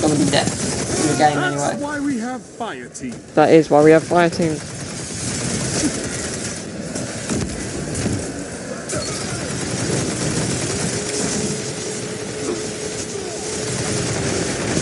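Futuristic guns fire and energy blasts crackle.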